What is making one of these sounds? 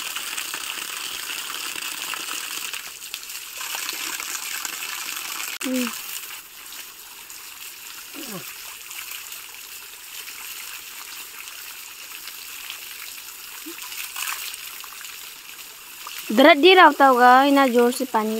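Water pours and splashes onto the ground.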